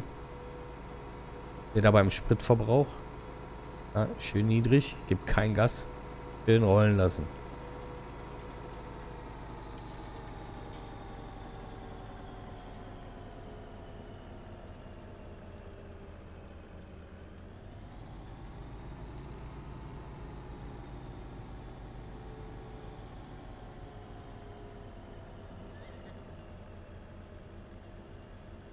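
A tractor engine hums steadily, dropping in pitch as it slows and rising again briefly.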